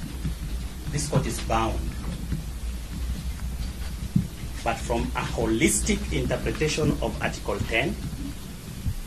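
A man speaks firmly and with emphasis.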